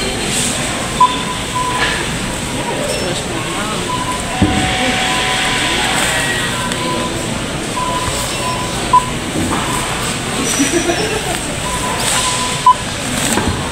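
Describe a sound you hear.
A self-checkout scanner beeps sharply as items are scanned.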